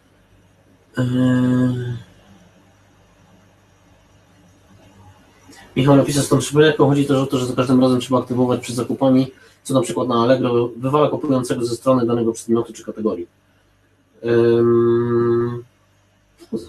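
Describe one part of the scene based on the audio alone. A man speaks calmly through a microphone on an online call, pausing now and then.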